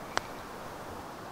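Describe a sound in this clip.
A putter taps a golf ball with a soft click.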